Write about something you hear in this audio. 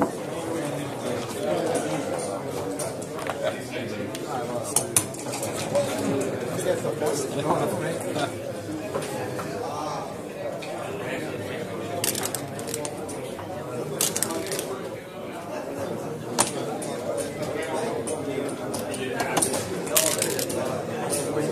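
Game checkers click and clack against a board.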